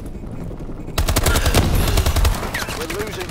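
Guns fire in rapid bursts, loud and close.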